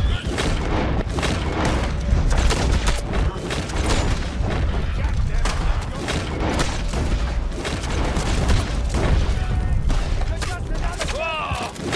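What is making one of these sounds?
A revolver fires shot after shot.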